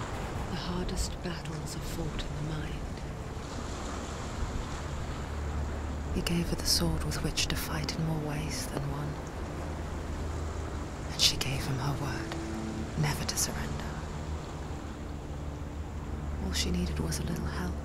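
A woman narrates calmly.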